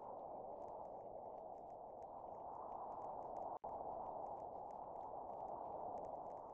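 A small car engine hums steadily.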